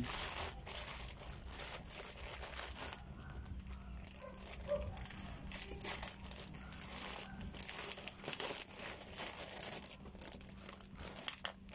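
A plastic mailing bag crinkles and rustles as hands tear it open.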